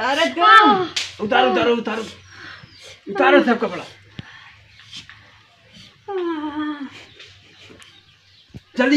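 A woman speaks and laughs close by.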